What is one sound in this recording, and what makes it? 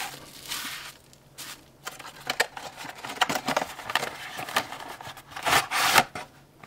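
Cardboard scrapes and rustles as a box is handled.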